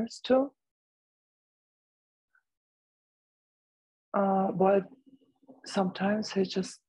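An older woman speaks calmly over an online call, pausing between phrases.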